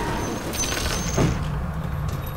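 A magical blast crackles and booms.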